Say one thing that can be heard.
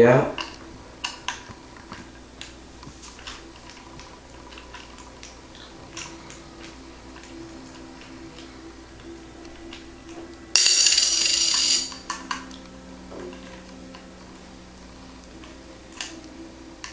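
A screwdriver clicks and scrapes against small metal screws.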